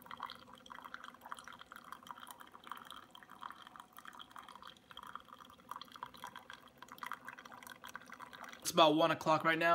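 Coffee trickles and splashes into a cup.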